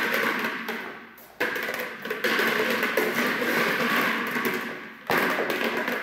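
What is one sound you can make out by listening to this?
A rubber ball bounces on the floor.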